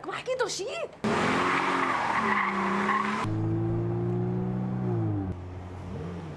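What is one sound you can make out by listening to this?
A car engine runs and revs as the car drives off.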